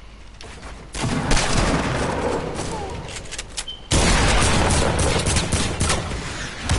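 Wooden planks clatter quickly as structures are built in a video game.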